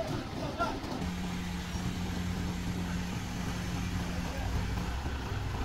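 A truck engine idles close by with a low drone.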